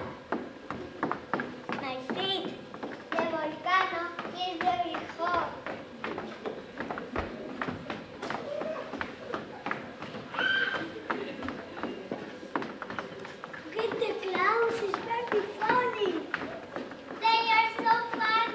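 Footsteps tap on a wooden stage.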